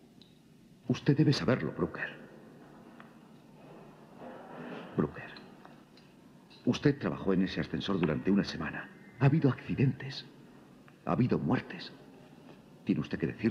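A middle-aged man answers in a low, calm voice.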